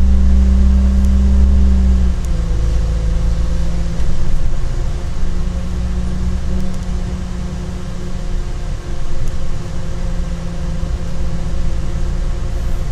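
A train's engine hums low and steady while rolling along.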